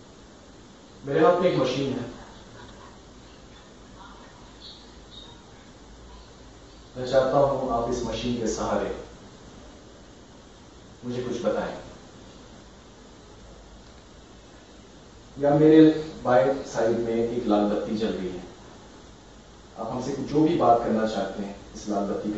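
A man speaks calmly nearby in short bursts.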